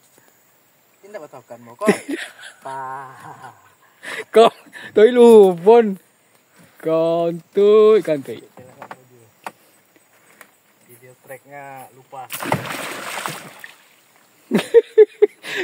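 A man talks and laughs excitedly close by.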